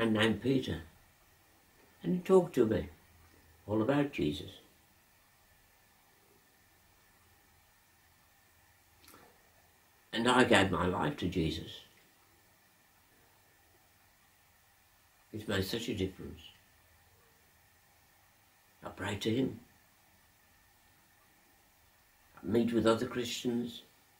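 An elderly man speaks slowly and calmly close by, in short phrases with long pauses.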